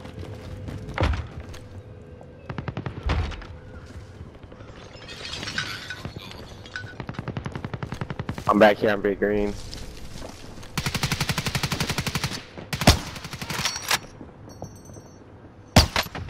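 A rifle fires single loud shots that ring out.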